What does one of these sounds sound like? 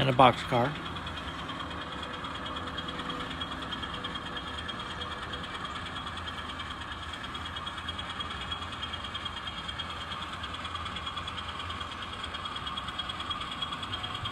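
A model diesel locomotive rumbles steadily as it rolls along the track.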